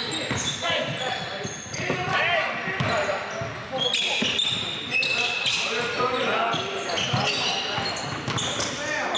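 Young men shout and call out to each other in an echoing gym.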